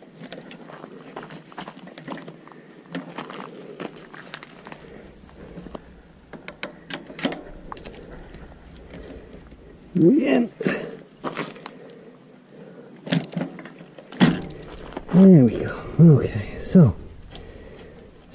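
Metal parts of a bicycle click and rattle as they are handled.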